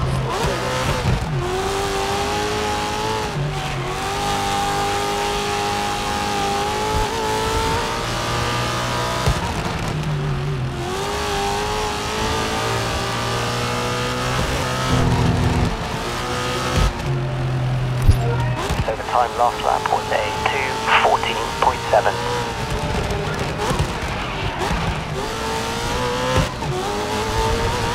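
A racing car engine roars at high revs, climbing in pitch and dropping sharply with each gear change.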